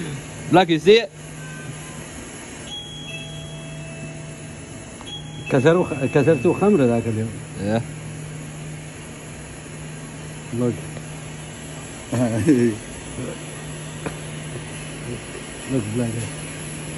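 A man talks quietly and close by, in short bursts.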